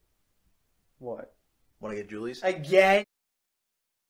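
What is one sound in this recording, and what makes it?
A younger boy answers calmly nearby.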